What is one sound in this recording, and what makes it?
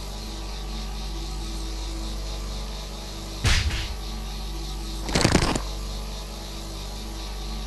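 Upbeat game music plays steadily.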